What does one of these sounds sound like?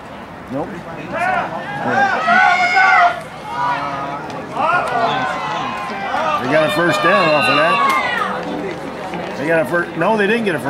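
A crowd cheers and shouts loudly, rising in excitement.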